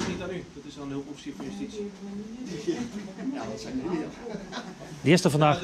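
A man talks calmly nearby in a room.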